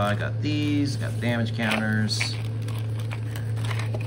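A plastic tray rustles and clicks in hands.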